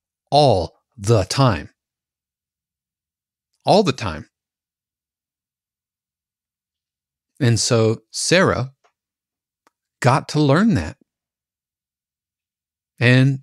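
A man speaks calmly and close into a microphone, in short phrases with pauses.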